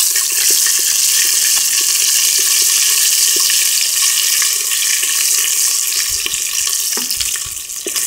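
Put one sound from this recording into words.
A wooden spoon scrapes and stirs against a metal pot.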